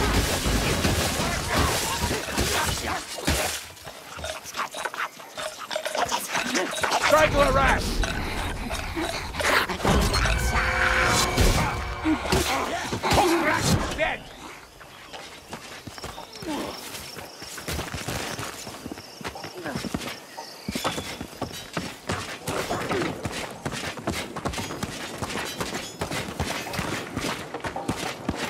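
Footsteps thud quickly on dirt and wooden floors.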